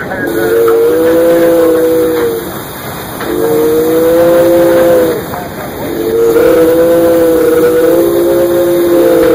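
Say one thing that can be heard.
A locomotive horn blasts loudly in long, repeated chords.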